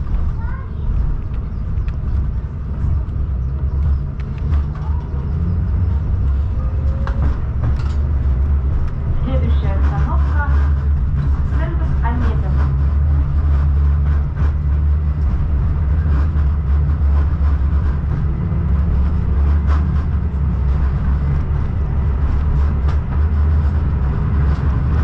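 Tyres rumble steadily on a road.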